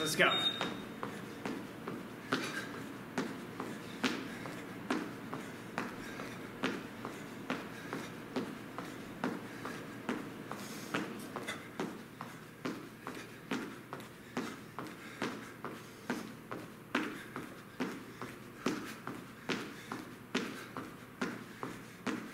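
Feet land rhythmically on a hard floor during jumping jacks.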